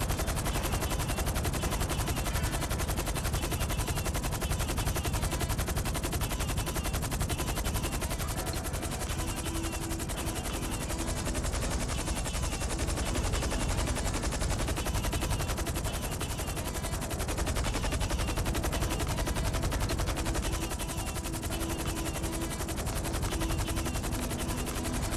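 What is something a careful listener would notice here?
A helicopter's rotor blades thump rapidly and steadily close by.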